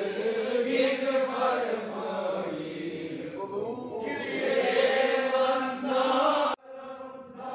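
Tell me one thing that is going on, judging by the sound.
A man recites a prayer aloud in a melodic voice.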